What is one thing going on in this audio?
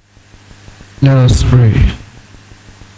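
A man speaks loudly through a microphone in a large echoing hall.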